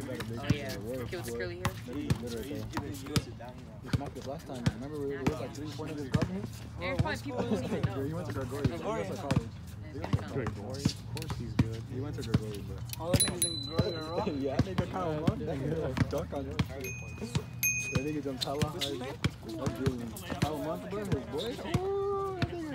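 A basketball bounces on pavement.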